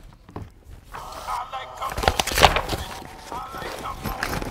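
A backpack's fabric rustles and crinkles.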